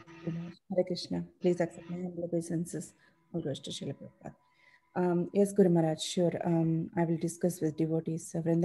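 A woman speaks softly over an online call.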